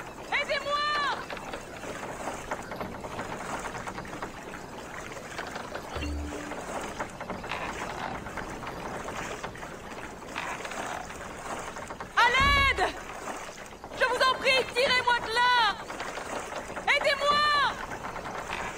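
Water laps and splashes softly as an oar rows a small boat.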